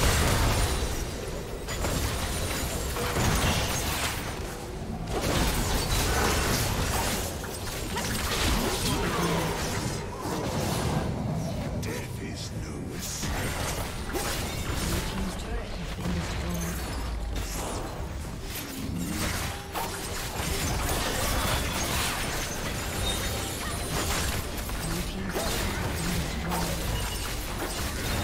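Spell effects whoosh, crackle and burst in a fast game fight.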